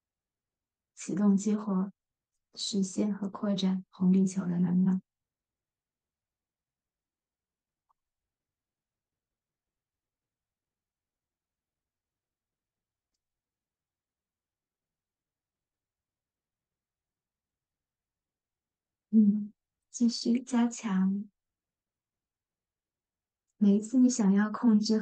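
A young woman speaks calmly into a nearby microphone, in short bursts with long pauses.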